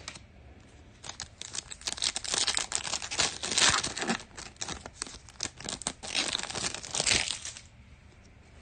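Foil card wrappers crinkle and tear as they are ripped open.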